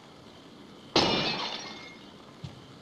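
A vase shatters loudly.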